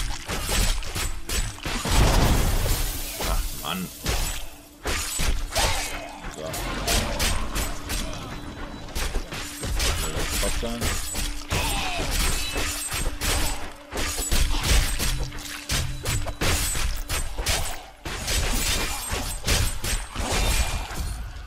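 Spells burst and crackle.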